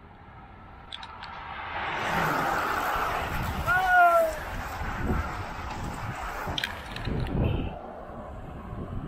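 A group of road bicycles whirs past close by.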